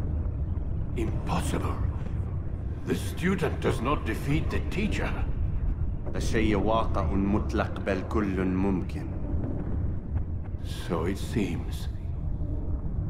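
An elderly man speaks slowly and gravely.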